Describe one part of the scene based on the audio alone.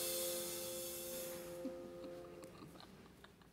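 A piano chord rings out in a reverberant hall and slowly fades.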